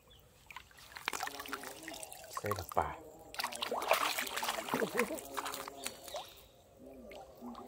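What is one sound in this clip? Water splashes and sloshes close by.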